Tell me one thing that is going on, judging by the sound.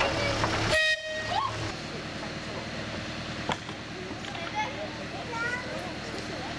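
A shallow river flows and babbles steadily outdoors.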